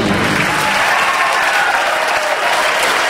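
An orchestra plays a final chord in a large echoing hall.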